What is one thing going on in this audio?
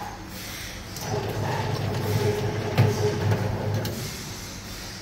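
A can seaming machine whirs and hums as it seals a can.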